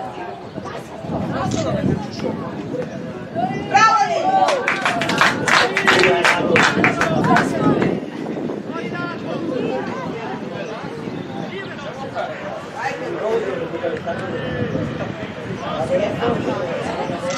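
Teenage boys shout and call to each other outdoors.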